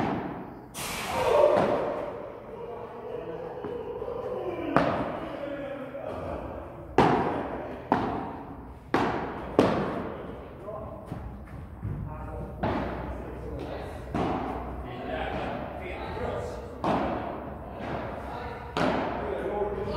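Paddle rackets hit a ball with sharp pops that echo in a large hall.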